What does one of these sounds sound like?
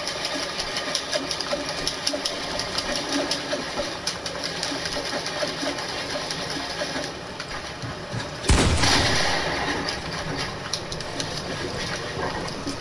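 Game building sounds clatter in quick, sharp clicks.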